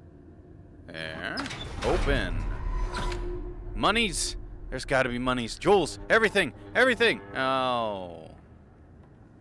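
A heavy metal door creaks slowly open.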